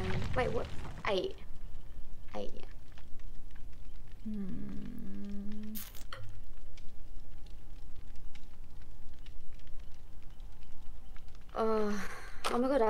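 A young woman talks casually and animatedly into a close microphone.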